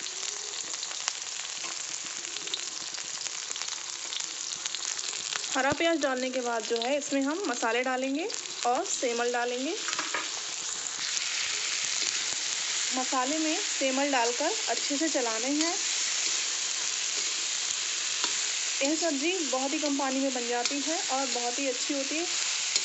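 Food sizzles steadily in hot oil.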